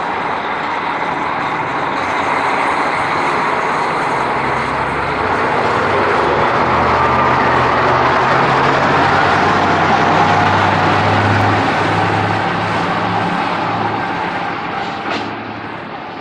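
A diesel railcar pulls away, its engine working hard.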